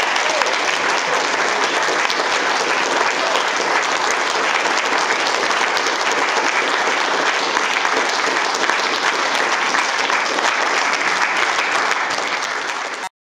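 An audience applauds loudly in a hall, then the clapping fades.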